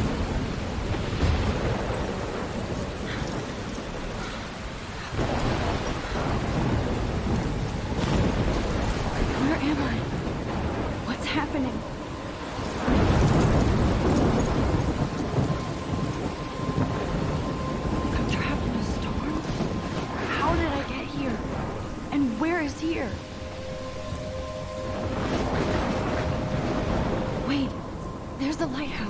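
Strong wind roars and gusts throughout.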